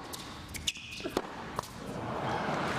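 A tennis ball is struck by a racket with sharp pops.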